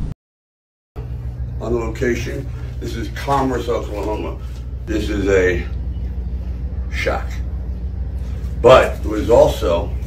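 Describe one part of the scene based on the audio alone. An elderly man talks with animation.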